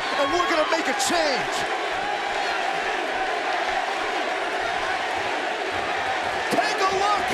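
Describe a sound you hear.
A large crowd cheers and shouts loudly in a big arena.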